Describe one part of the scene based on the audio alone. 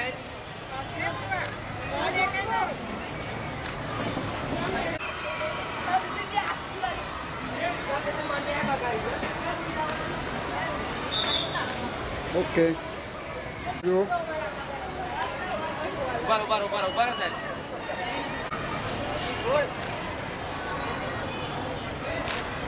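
A crowd of children and adults chatters nearby.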